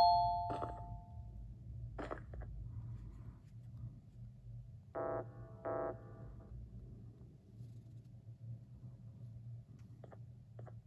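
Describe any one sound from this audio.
Fingers tap lightly on a tablet's glass.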